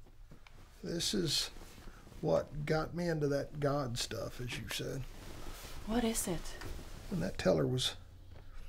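An elderly man speaks nearby.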